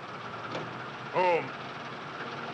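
An elderly man speaks close by.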